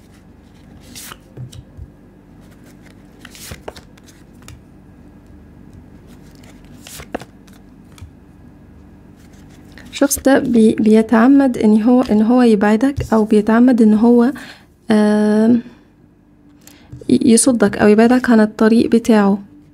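Playing cards are laid down and slid across a smooth table.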